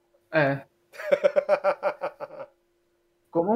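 A young man laughs loudly over an online call.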